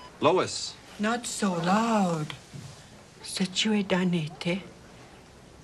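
A woman speaks with emotion.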